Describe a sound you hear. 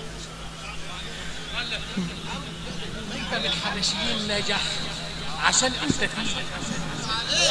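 A crowd of men and children chatters loudly nearby.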